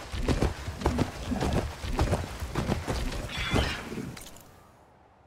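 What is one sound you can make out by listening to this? A large mechanical creature's metal feet thud and clank in a quick rhythm.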